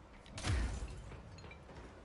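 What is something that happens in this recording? Glass shatters with a loud crash.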